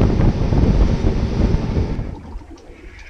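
A boat engine roars at speed.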